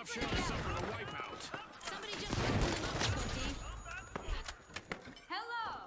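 A rifle fires rapid loud shots.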